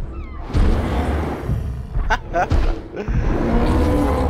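A large beast grunts and bellows.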